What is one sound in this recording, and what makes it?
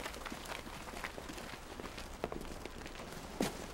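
Footsteps shuffle across stone paving.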